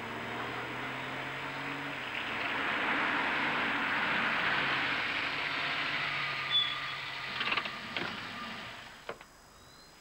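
A car engine hums as a car rolls slowly up a driveway.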